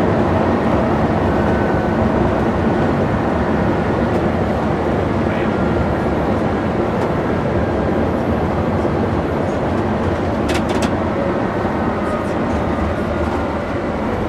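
A vehicle's engine drones steadily from inside as it drives along the road.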